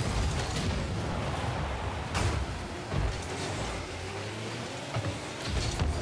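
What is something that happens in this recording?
A car engine hums and roars steadily.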